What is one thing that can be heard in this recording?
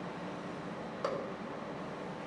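A plastic bottle knocks down onto a metal plate.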